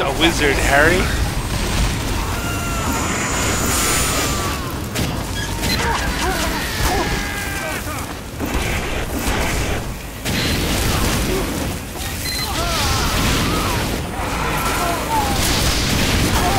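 A flamethrower roars in loud bursts.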